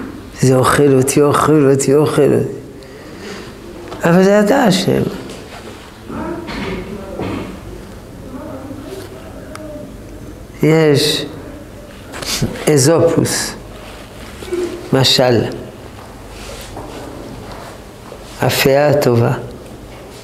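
An elderly man speaks calmly and close by, in bursts with pauses.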